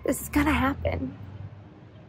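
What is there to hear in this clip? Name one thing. A young woman speaks cheerfully close to the microphone.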